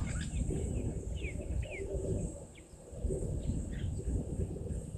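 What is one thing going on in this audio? A bird chirps in short rapid calls nearby.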